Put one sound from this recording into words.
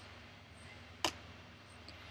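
A card is set down on a table with a soft tap.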